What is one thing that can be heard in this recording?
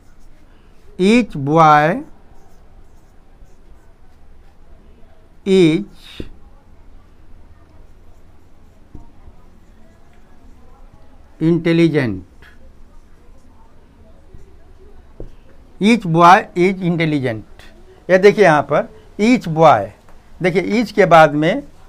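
An elderly man speaks calmly and clearly, in short phrases with pauses, as if teaching.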